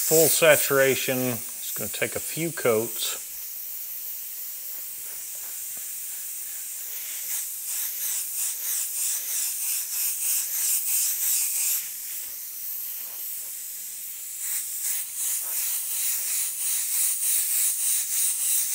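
An airbrush hisses softly as it sprays.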